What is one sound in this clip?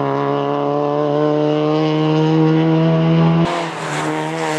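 A four-cylinder rally car engine screams at high revs as the car speeds away.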